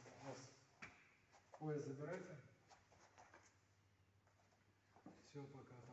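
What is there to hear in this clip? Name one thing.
Bare feet thump and shuffle on a soft mat.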